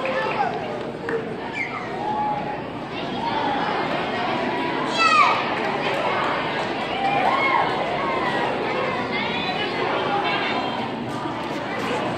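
Young girls shout and squeal excitedly close by.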